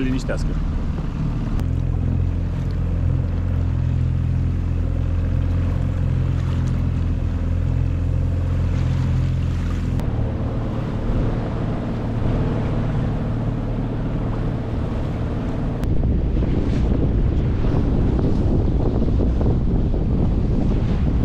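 A boat engine hums steadily throughout.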